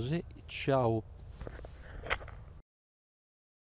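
A man speaks close by, calmly.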